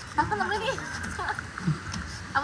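A young woman laughs loudly up close.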